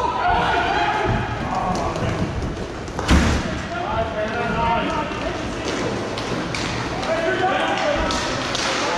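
Players shout and call to each other across an echoing hall.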